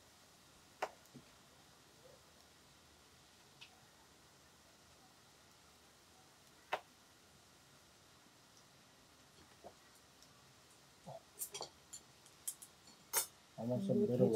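Metal tongs click and scrape against a grill pan.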